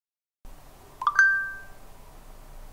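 A phone chimes with a short message alert.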